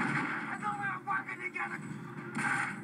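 A man shouts through a television speaker.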